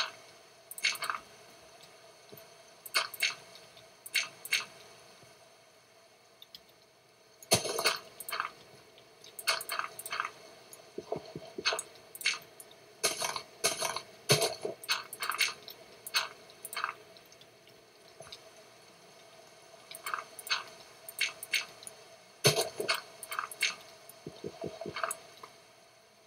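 Blocks of dirt crunch as they are dug out, in quick bursts.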